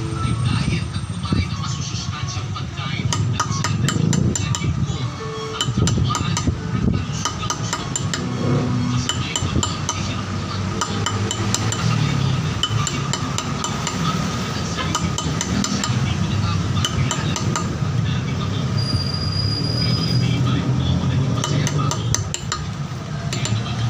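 A small hammer taps a steel chisel engraving granite.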